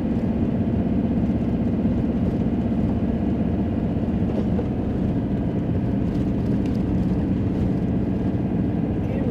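Tyres rumble on a rough paved road.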